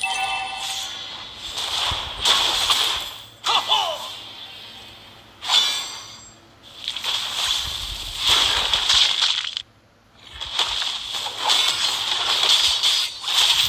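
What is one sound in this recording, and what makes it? Game spell effects whoosh and crackle in bursts.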